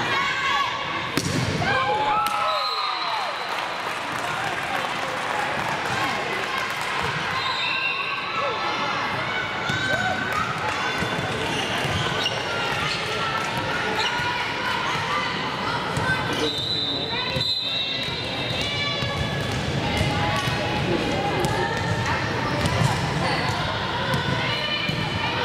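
Girls shout and cheer in a large echoing gym.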